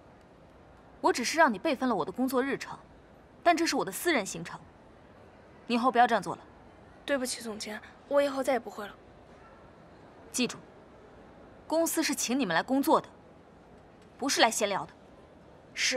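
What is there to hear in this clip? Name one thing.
A young woman speaks firmly nearby.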